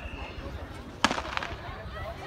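A starting pistol fires once with a sharp crack.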